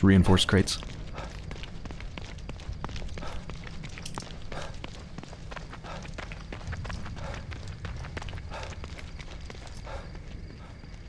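Footsteps run quickly over wet ground.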